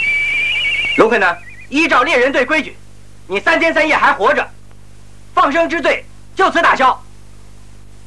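A man speaks forcefully, up close.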